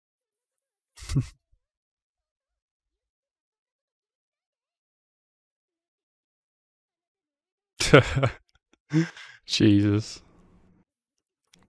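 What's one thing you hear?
A young man laughs briefly close to a microphone.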